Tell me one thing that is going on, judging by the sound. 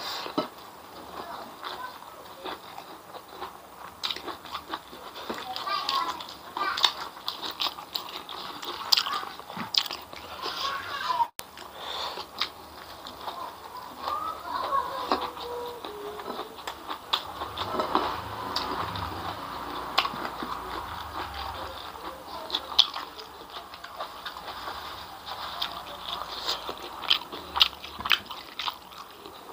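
Fingers squish and crackle through food on a plate.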